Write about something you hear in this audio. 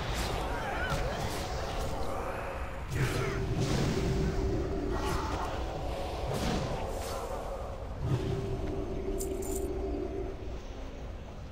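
Magic spells whoosh and chime in a fight.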